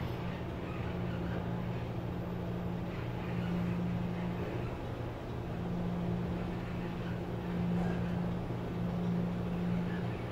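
An elevator car hums steadily as it rises.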